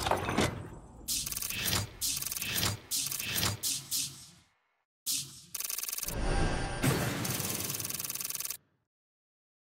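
Short electronic chimes tick in quick succession as a score counts up.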